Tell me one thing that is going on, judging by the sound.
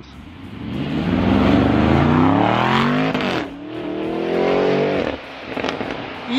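A powerful car engine roars as a car speeds past on a wet road.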